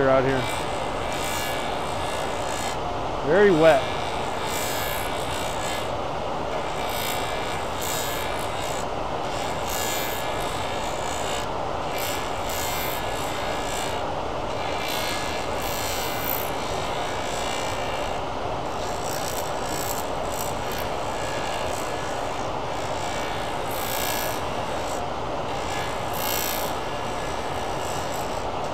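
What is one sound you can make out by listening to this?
Coolant hisses and sprays against a metal guard.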